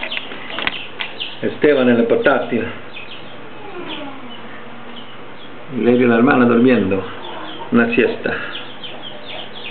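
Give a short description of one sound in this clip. A young boy talks.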